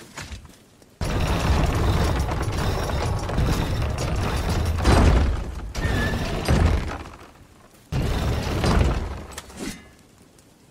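A wooden winch clatters and creaks as it is cranked round.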